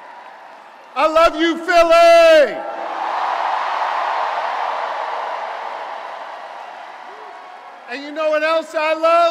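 A man shouts loudly into a microphone over loudspeakers.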